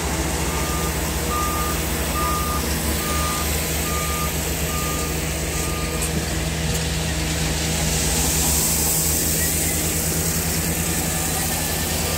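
A heavy diesel engine rumbles steadily up close.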